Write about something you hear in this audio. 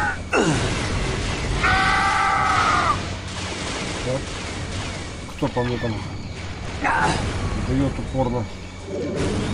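Blaster shots fire in quick bursts.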